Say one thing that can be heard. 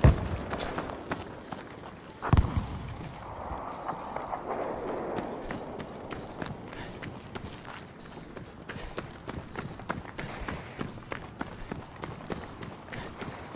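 Footsteps run on gravel.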